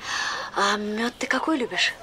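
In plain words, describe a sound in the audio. A middle-aged woman speaks calmly, close by.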